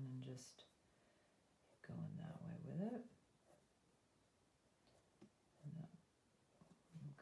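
A felt-tip marker scratches softly on paper.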